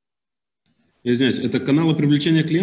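A man speaks calmly through a microphone, as if on an online call.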